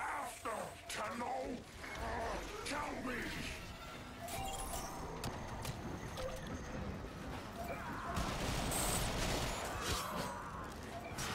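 Blades swish and clang in a fast fight.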